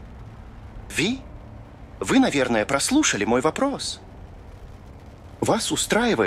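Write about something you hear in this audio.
Rain patters steadily on a car window.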